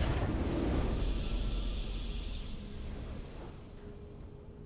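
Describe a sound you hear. A triumphant game fanfare bursts out and fades away.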